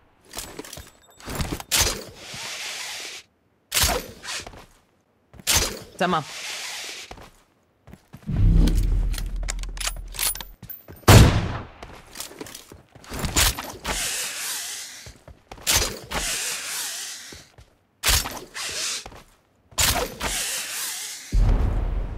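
Web lines shoot out and whoosh past again and again.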